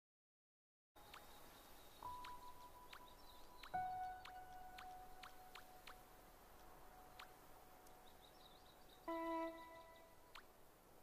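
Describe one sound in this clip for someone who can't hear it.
Soft electronic chimes ring out in short notes.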